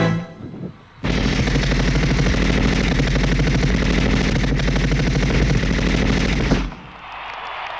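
Loud pop music with a heavy beat plays over loudspeakers.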